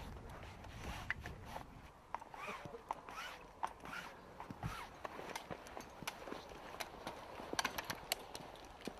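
A pulley clicks and rattles along a taut rope.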